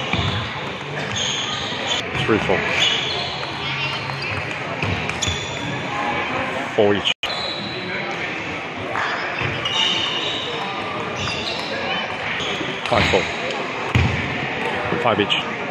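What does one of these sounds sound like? Shoes squeak on a wooden floor.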